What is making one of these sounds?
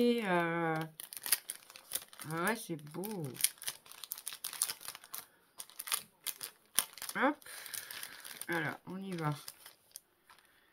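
Plastic wrapping crinkles and rustles between hands.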